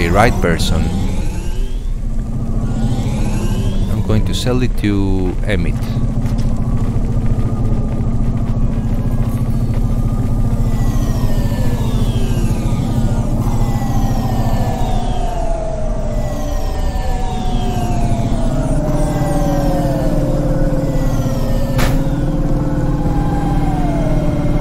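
A flying car's engine hums steadily.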